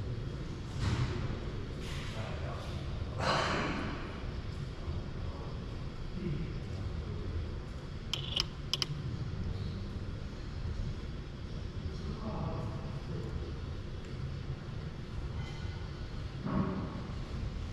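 A low machine hum runs steadily.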